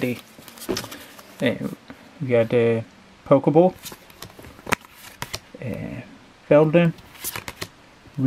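Playing cards rustle and slide against each other as they are shuffled by hand.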